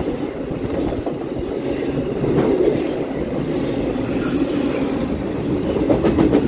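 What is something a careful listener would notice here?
A freight train rumbles steadily past, close by.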